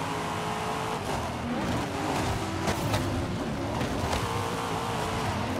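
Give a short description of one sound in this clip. Tyres screech as a car skids through a corner.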